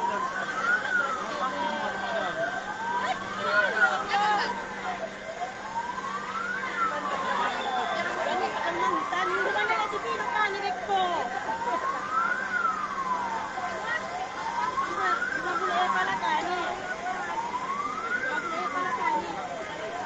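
A siren wails up and down steadily nearby.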